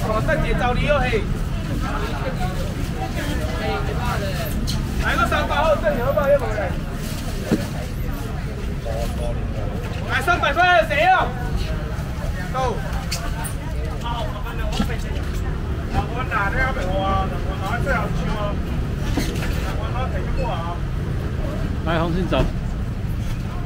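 A young man calls out loudly to a crowd, close by.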